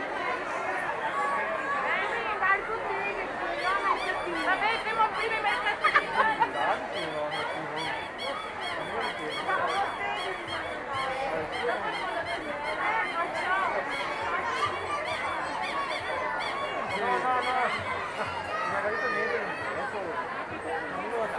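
A large outdoor crowd of men and women chatters all around.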